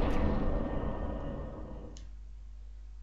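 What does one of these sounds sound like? A rushing whoosh swells and fades.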